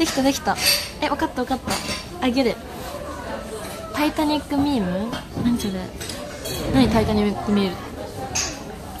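A young woman talks cheerfully and close by.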